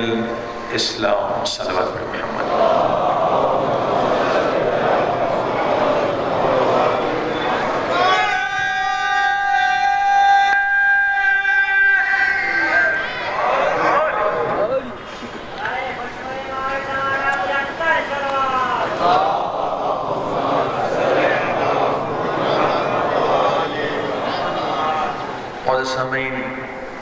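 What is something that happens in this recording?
A man speaks with feeling into a microphone, his voice carried through loudspeakers.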